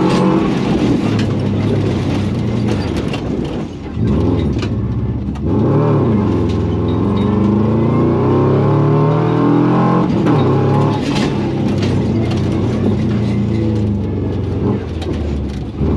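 Gravel and stones clatter against the underside of a car.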